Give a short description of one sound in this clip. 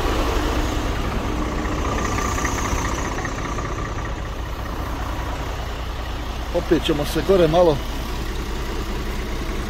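A truck engine idles with a low, steady rumble nearby.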